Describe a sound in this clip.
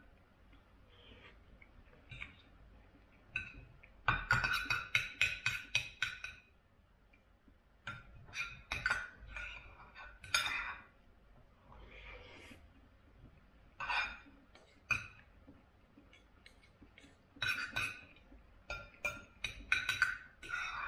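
Cutlery scrapes and clinks against a plate close by.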